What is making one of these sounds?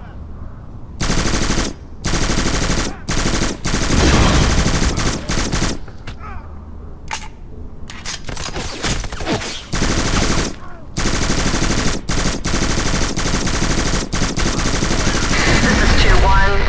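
Rapid bursts of automatic rifle fire crack loudly and close.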